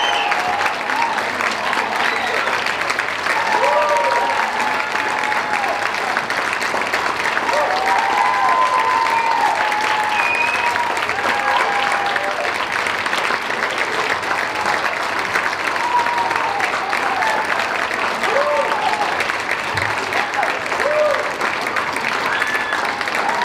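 A large crowd applauds loudly and steadily.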